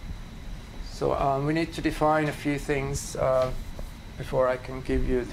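A man speaks calmly in a room with a slight echo.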